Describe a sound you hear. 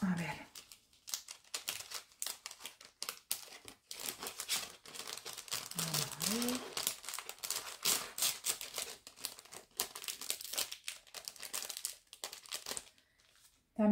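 A plastic sleeve crinkles and rustles as it is handled.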